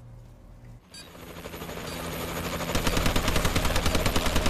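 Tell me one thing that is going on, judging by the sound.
A helicopter's rotor thuds rapidly and grows louder.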